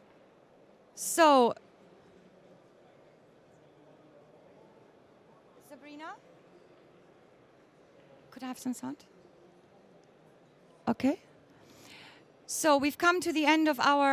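A woman speaks through a microphone and loudspeakers, pausing between short phrases.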